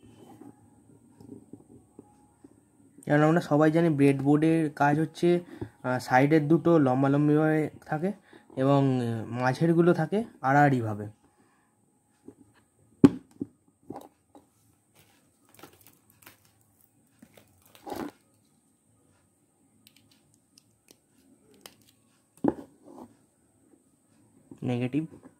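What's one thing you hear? Small plastic parts click and tap as hands handle them.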